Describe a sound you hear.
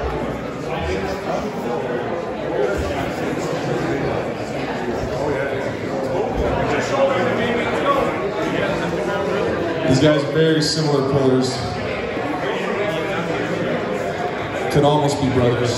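A man gives calm instructions close by.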